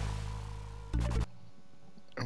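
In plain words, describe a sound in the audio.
Game music plays and cuts off.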